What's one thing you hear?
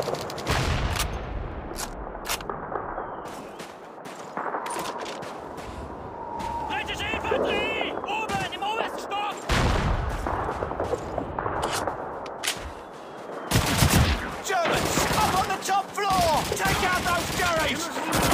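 Gunshots crack in quick bursts with echoing booms.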